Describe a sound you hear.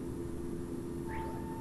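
An autopilot disconnect alarm sounds.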